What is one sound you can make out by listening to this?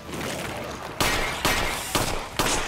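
A clay pot shatters.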